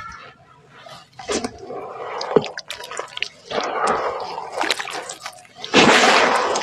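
Wet mud splats and drips with sharp little pops.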